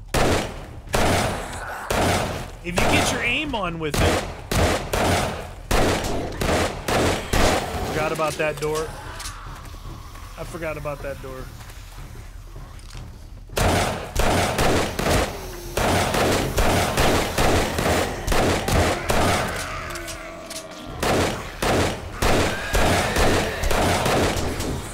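A rifle fires rapid, loud shots in bursts.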